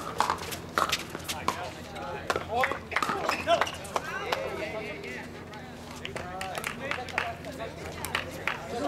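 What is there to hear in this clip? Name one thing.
Paddles strike a plastic ball with sharp pops.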